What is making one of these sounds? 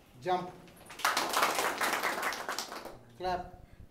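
Several people clap their hands in a burst of applause.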